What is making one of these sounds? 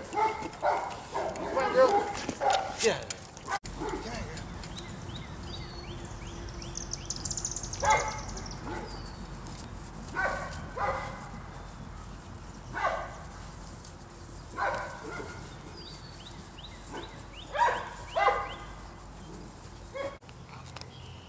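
Puppies yelp and growl in short bursts.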